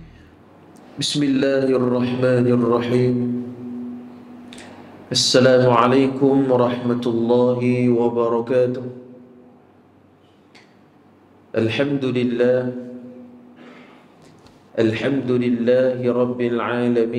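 A young man chants a recitation in a long, melodic voice through a microphone.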